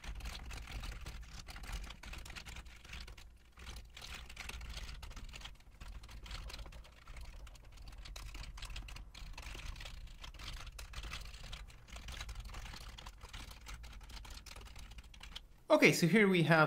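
Keys on a keyboard clatter in quick bursts of typing.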